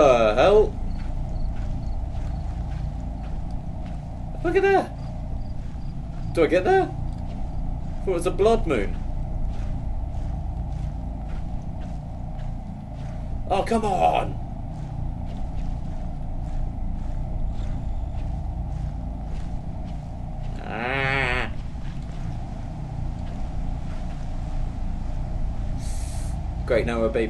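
A young man speaks in short, excited bursts close to a microphone.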